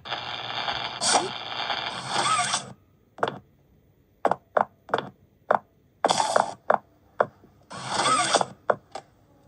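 Short electronic game sound effects play in bursts from a tablet speaker.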